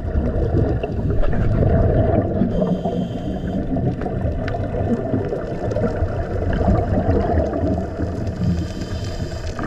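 Scuba air bubbles gurgle and rumble loudly underwater.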